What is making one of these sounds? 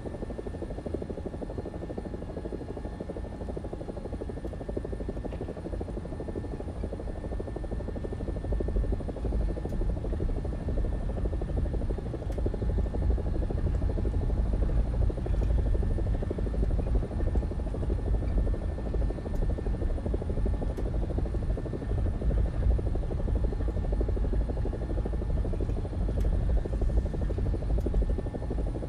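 A helicopter engine and rotor roar steadily, growing louder partway through.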